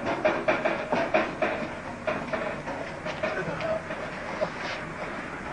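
A young man talks loudly close by.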